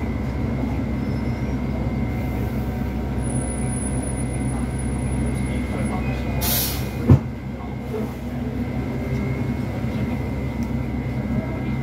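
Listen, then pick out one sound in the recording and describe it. A bus engine hums and rumbles steadily from inside the cabin.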